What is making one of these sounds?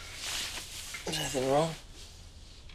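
A man speaks close by with a strained, rising voice.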